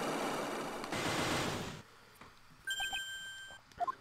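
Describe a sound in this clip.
Padlocks snap shut with a metallic clack.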